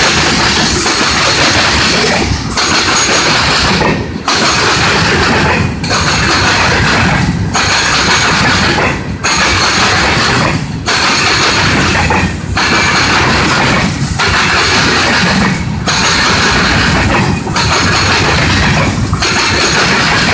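A freight train rumbles steadily along the tracks.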